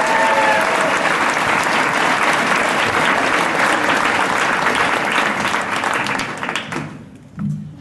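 An audience applauds and cheers loudly.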